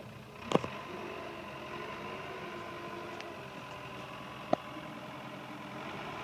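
A hydraulic arm whines as a loader bucket lifts.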